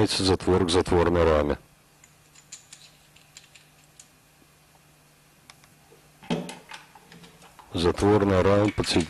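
Metal parts of a rifle click and clack as they are handled.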